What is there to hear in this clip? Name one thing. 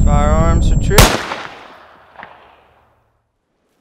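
A shotgun fires with a loud bang that echoes away.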